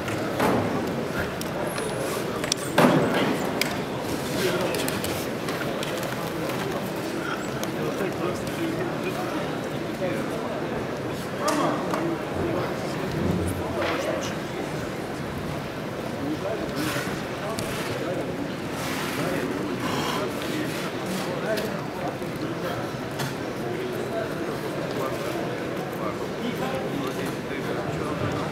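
A crowd murmurs and chatters in a large echoing hall.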